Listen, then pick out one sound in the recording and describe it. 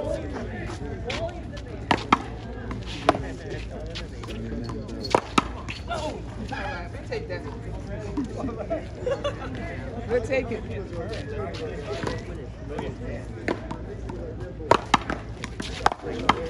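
Adults talk and call out nearby, outdoors.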